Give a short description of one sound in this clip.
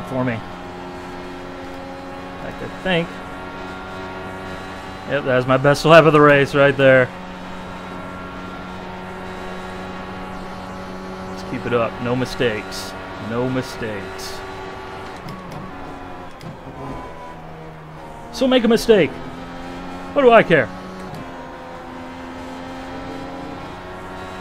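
A racing car engine drones steadily at high revs, its pitch shifting as it changes gear.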